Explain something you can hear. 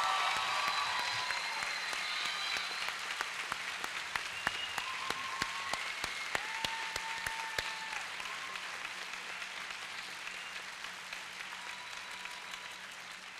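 A large crowd cheers and claps in a big echoing hall.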